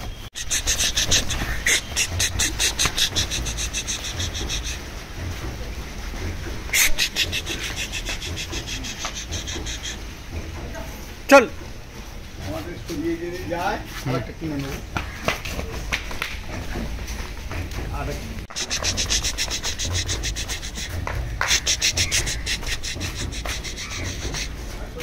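Hooves clop and scrape on concrete.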